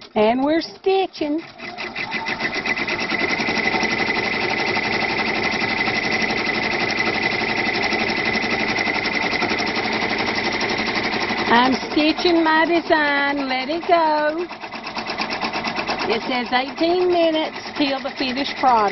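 An embroidery machine stitches with a fast, steady rattling hum.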